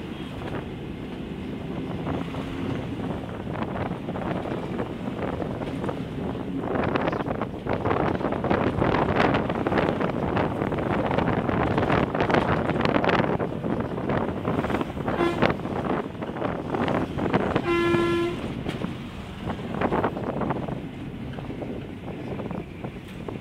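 Motorbikes and small vehicles drive past on a road.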